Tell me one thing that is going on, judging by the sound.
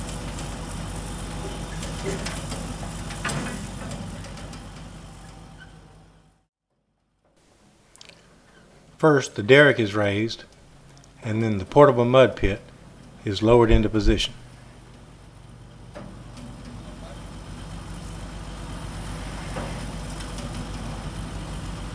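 A truck engine idles with a low, steady hum.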